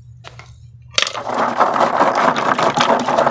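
Water sloshes in a bucket.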